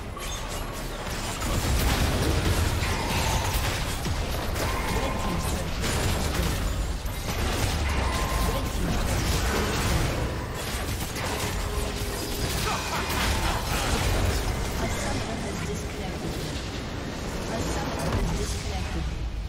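Game spells and attacks crackle and boom in a busy fight.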